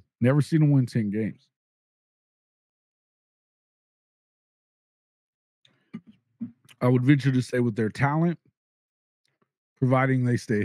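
A middle-aged man speaks with animation close into a microphone.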